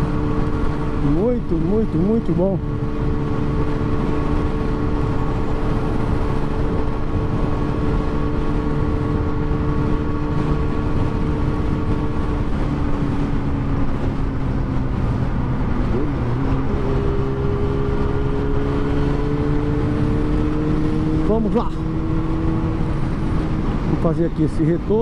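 A motorcycle engine hums steadily at speed.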